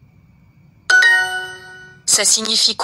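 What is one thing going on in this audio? A bright chime rings out for a correct answer.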